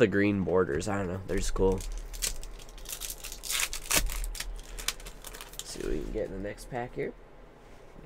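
Foil card packs crinkle and rustle in someone's hands.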